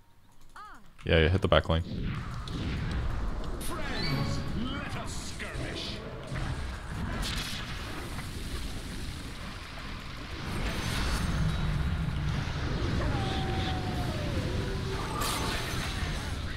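Spell effects and explosions crackle and boom.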